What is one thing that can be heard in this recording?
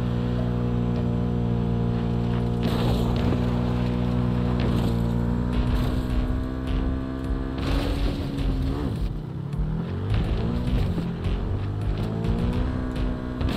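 A motorcycle engine roars and revs steadily.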